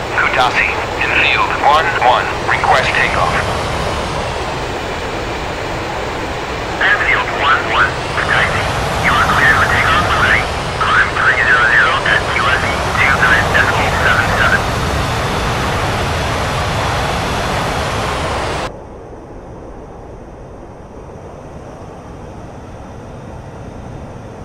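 A jet engine roars steadily, then sounds suddenly muffled and quieter.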